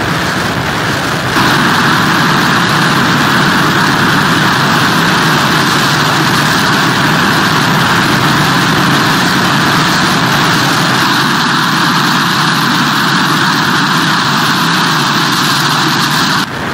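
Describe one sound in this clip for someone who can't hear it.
Heavy surf crashes and roars against pier pilings.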